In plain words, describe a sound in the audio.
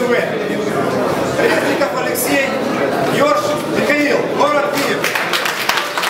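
A middle-aged man announces loudly through a loudspeaker.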